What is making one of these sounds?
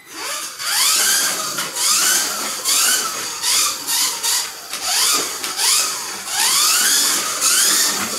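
Tyres of a toy car hiss on a foam track.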